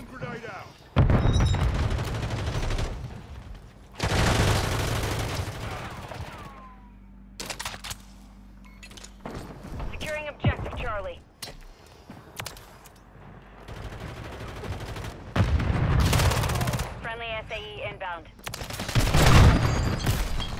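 Guns fire in loud, rapid bursts.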